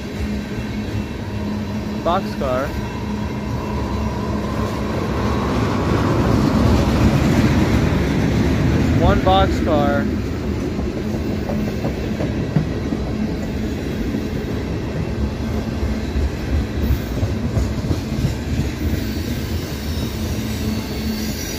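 Train wheels clack rhythmically over the rail joints.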